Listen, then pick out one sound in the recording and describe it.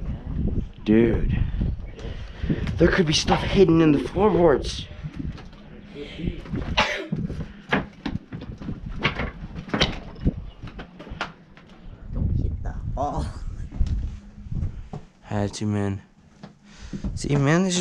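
Footsteps thud and creak on old wooden floorboards.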